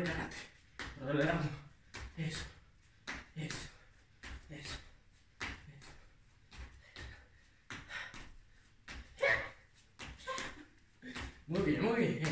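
Feet thud and shuffle on a hard floor as a man jumps.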